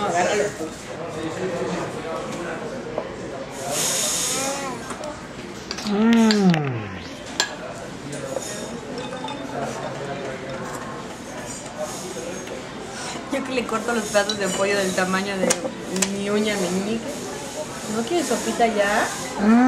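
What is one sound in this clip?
A young woman talks softly and playfully up close to a baby.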